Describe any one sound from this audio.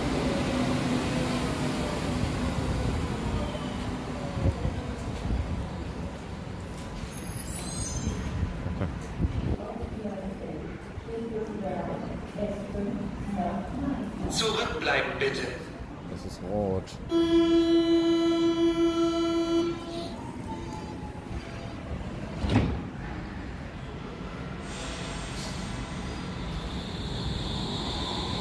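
A train hums low while standing.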